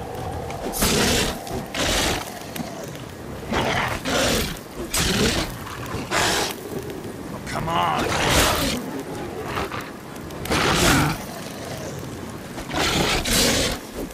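A sword strikes a creature with a heavy thud.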